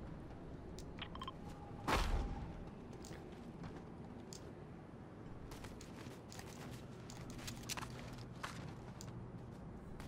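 Footsteps clank quickly on metal steps and walkways.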